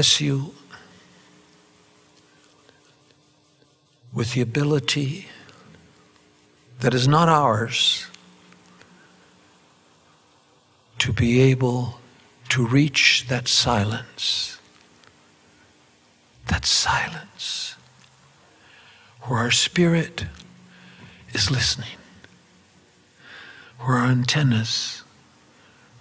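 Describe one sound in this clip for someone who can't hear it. An elderly man speaks with animation into a microphone, heard through loudspeakers in an echoing room, with long pauses.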